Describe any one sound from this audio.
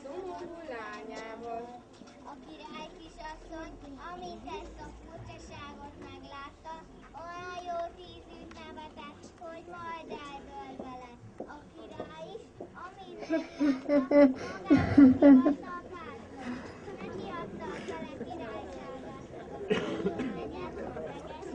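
Children's voices chatter and call out outdoors.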